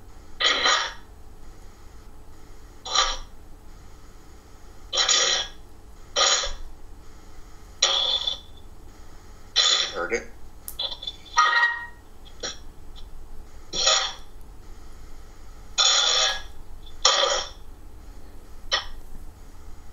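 A man speaks in short bursts over an online call.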